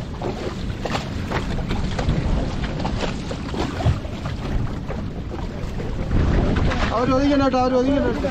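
An outboard motor rumbles steadily.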